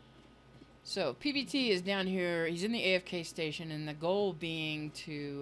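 An elderly woman speaks with animation into a microphone.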